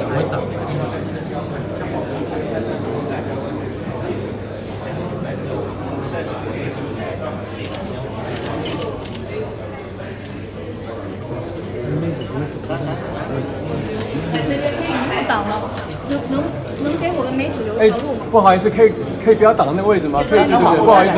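A crowd of men and women chatter nearby in a busy hall.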